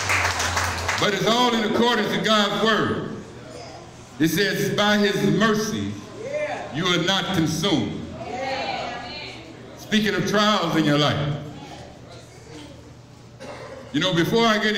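A man sings loudly through loudspeakers.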